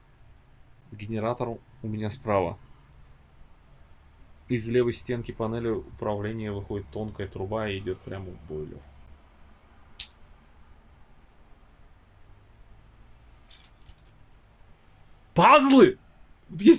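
A young man reads aloud with animation close to a microphone.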